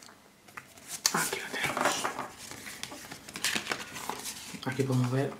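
Paper pages rustle as they are flipped through.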